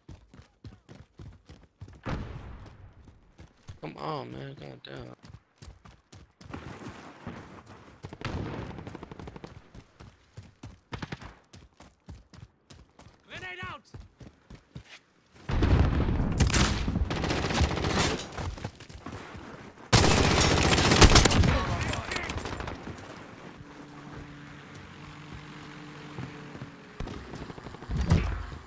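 Footsteps crunch quickly over gravel and dirt.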